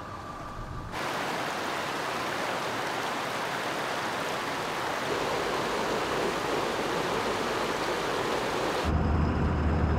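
A stream rushes and splashes over rocks.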